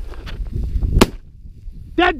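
A shotgun fires a single loud shot.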